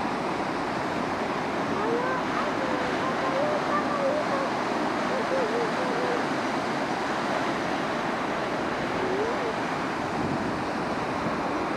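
Fast floodwater rushes and churns loudly and steadily.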